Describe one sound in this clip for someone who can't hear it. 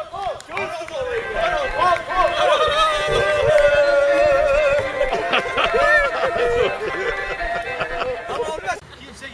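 A group of men sing together.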